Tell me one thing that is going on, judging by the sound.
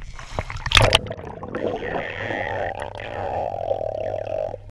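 Muffled underwater rumbling and bubbling fills the sound.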